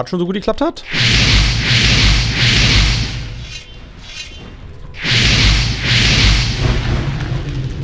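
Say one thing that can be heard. A fireball whooshes and roars.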